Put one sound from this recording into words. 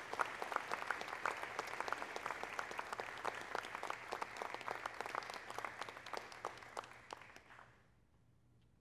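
An audience applauds in a large hall, then the clapping dies away.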